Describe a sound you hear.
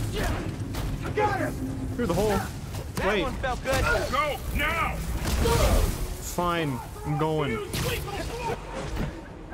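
Punches and blows thud in a fight.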